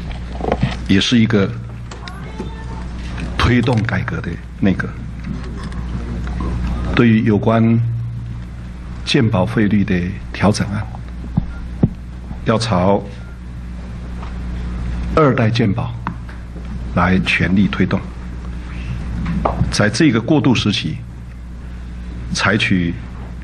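An elderly man speaks slowly and formally through a microphone, in short phrases with pauses.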